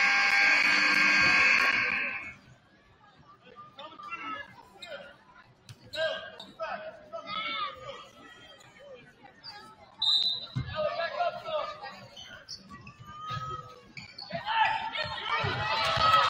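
Spectators shout and chatter.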